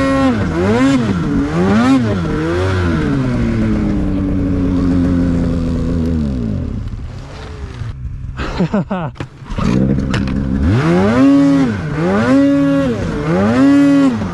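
A snowmobile engine revs up and down loudly, close by.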